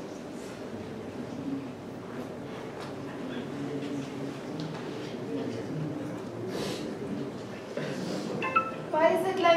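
A crowd of children and adults murmurs quietly in a room.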